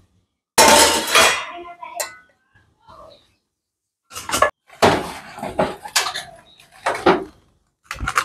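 Steel containers clank against each other.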